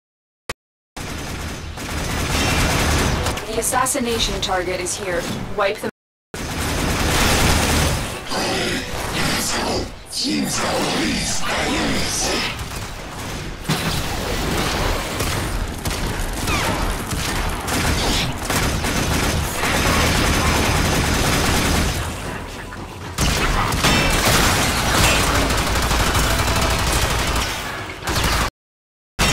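Gunfire and energy blasts crackle rapidly.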